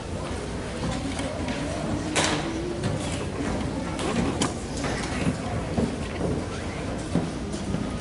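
An audience murmurs quietly nearby.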